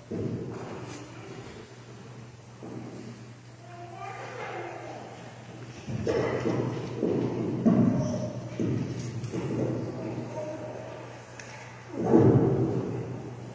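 An organ plays slow, sustained chords in an echoing hall.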